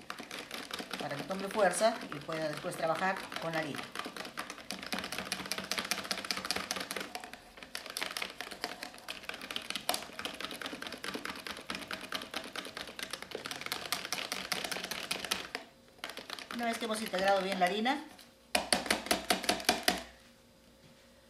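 A spoon stirs quickly against the sides of a plastic container.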